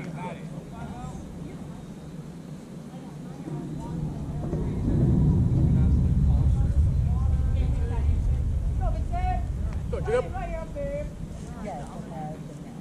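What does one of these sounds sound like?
Wind gusts outdoors, rumbling low.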